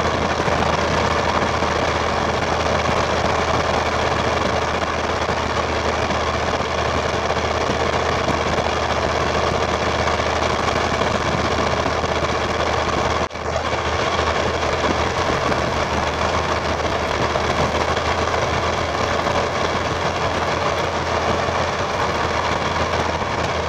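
Wind rushes past at highway speed.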